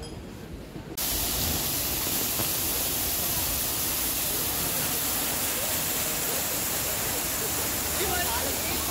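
Fountain water splashes steadily nearby.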